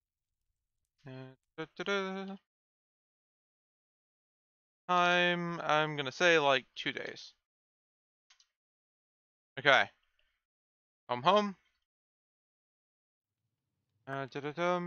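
A young man talks casually into a close microphone, in short bursts with pauses.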